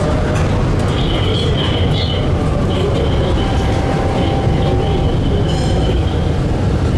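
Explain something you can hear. Tram wheels squeal thinly against the rails.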